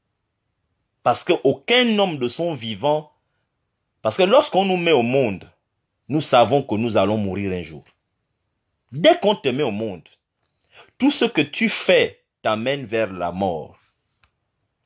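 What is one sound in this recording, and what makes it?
A man talks calmly close to a phone microphone, in short bursts with pauses.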